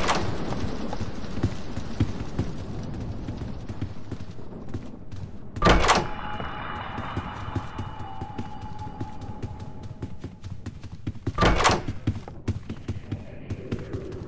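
Footsteps thud steadily across a wooden floor.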